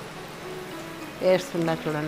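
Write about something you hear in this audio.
Chopped vegetables tumble into a sizzling pan.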